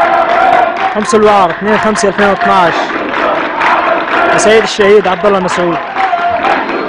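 A man's voice leads the chant through a loudspeaker.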